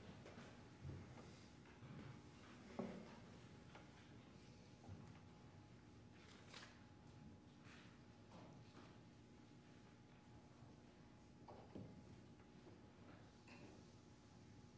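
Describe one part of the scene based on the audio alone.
A piano plays softly and slowly in a room with some echo.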